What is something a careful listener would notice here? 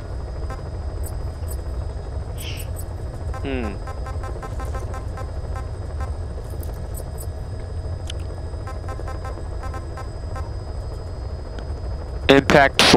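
Soft electronic menu clicks tick quickly as selections change.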